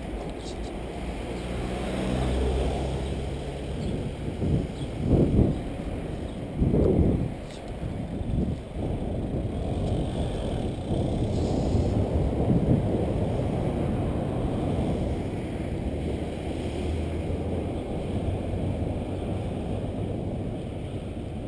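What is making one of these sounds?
Wind rumbles steadily against the microphone while riding outdoors.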